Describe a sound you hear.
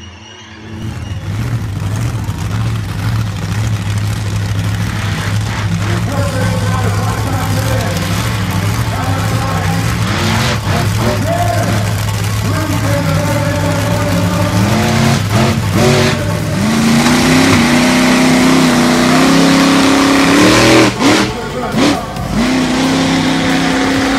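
A large engine roars and revs loudly outdoors.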